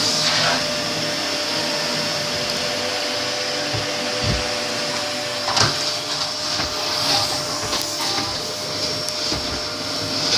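Dramatic film music plays through a television speaker.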